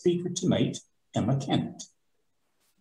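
An older man speaks briefly over an online call.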